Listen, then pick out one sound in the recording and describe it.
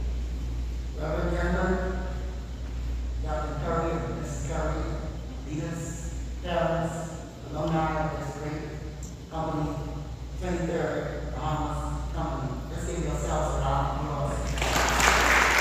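A man speaks steadily into a microphone, heard through loudspeakers in an echoing room.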